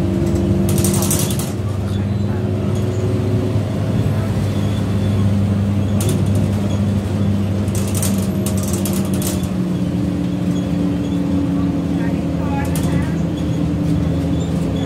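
A bus engine hums and drones steadily while driving.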